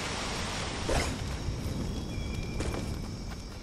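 Footsteps of game characters run over stone.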